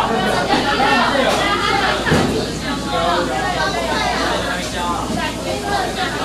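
A metal spoon clinks against a metal bowl.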